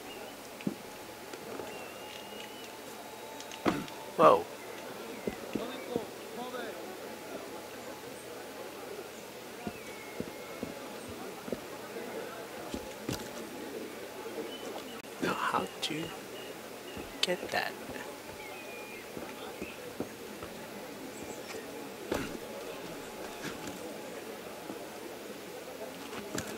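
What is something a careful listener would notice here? Footsteps and landings thud softly on stone.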